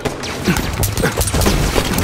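An explosion bursts with a roar.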